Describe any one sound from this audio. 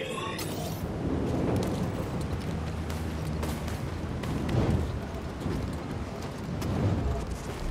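Footsteps crunch on rock.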